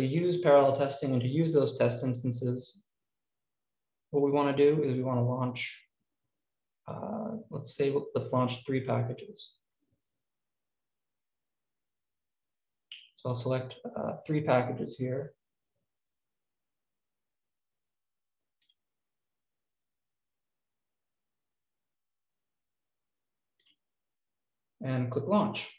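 A young man talks calmly into a close microphone, with pauses.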